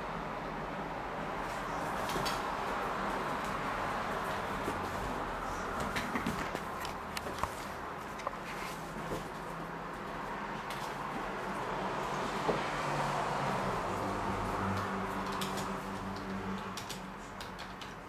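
A dog rustles a blanket as it noses around.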